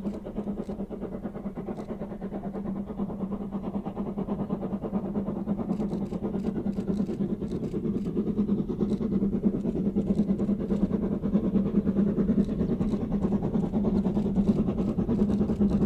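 A steam locomotive chuffs rhythmically as it approaches, growing louder.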